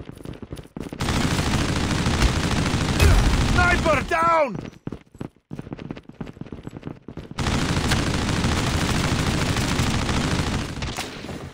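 Rapid gunfire rattles in long, loud bursts.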